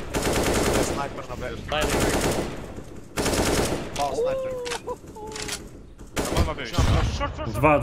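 Gunfire from a rifle bursts in quick loud cracks.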